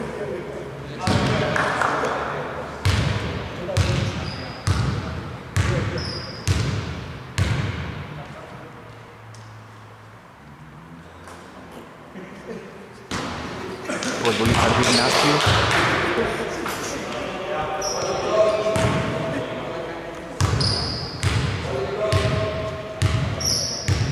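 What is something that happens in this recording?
A basketball bounces on a hardwood floor in a large echoing hall.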